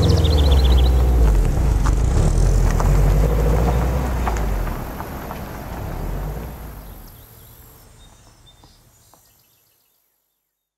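A car engine rumbles deeply close by and fades as the car drives away.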